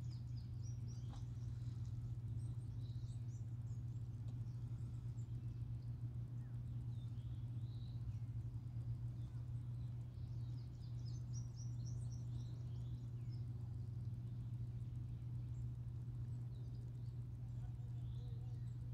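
Wind rumbles steadily across the open water.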